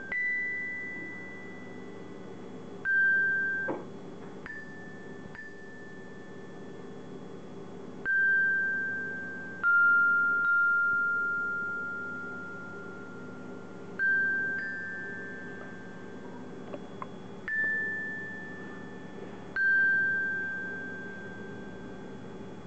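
A metallophone rings out with single slow notes struck by a mallet, each note ringing and slowly fading.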